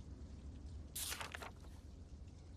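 A paper page rustles as it turns.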